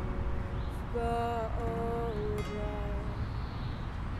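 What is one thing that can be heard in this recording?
A young woman sings close to the microphone.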